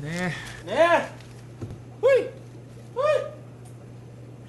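A man laughs loudly and mockingly.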